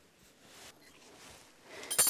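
Scissors snip through threads.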